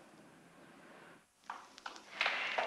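A woman's heels tap on stairs.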